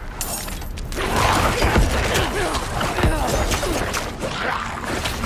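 Weapons clash and monsters shriek in a fierce fight.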